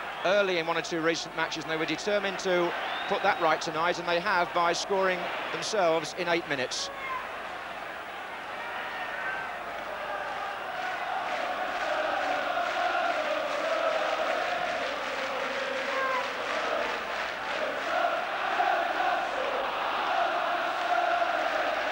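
A large crowd roars and chants in a stadium.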